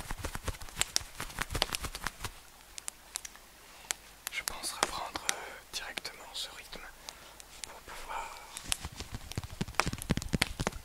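Leather gloves creak and tap close to a microphone.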